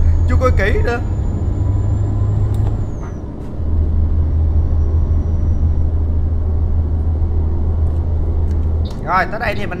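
A bus engine hums steadily at a low pitch.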